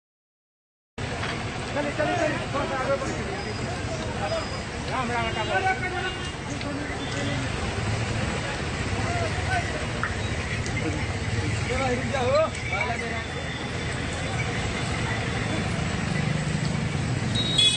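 Bullock carts rumble along a road.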